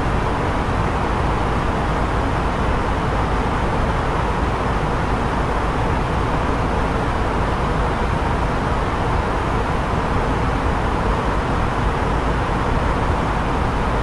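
Jet engines and rushing air roar steadily.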